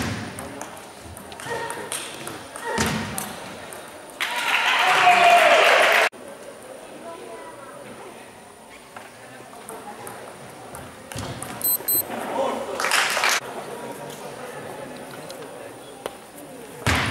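A table tennis ball clicks back and forth on the paddles and table in a large echoing hall.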